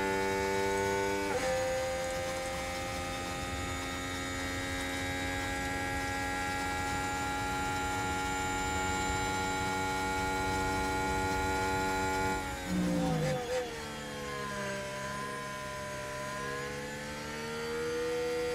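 A racing car engine whines at high revs, dropping in pitch as it shifts down and then climbing again.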